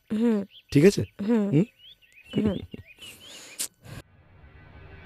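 A woman speaks softly up close.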